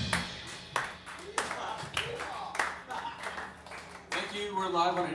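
A drum kit is struck with loud hits and cymbal crashes.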